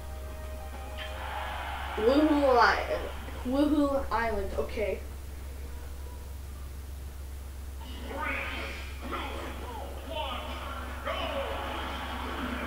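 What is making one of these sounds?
Video game music and sound effects play from a television speaker.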